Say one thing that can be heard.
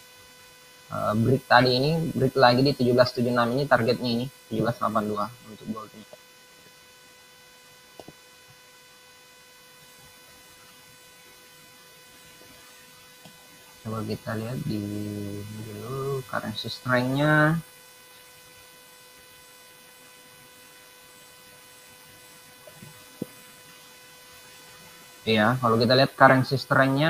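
A young man talks calmly into a microphone over an online call, in bursts with long pauses.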